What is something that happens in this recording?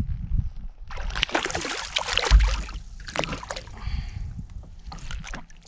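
A fish splashes and flaps out of the water.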